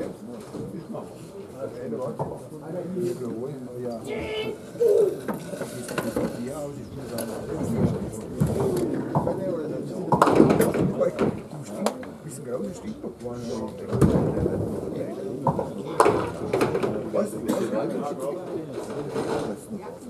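Men talk among themselves in a large echoing hall.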